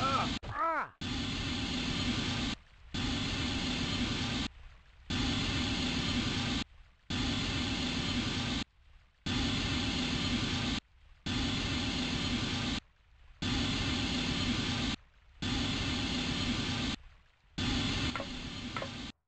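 Water splashes and sloshes as a man wades through it.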